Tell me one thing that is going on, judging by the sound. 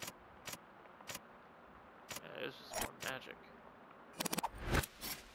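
Short game menu blips click one after another.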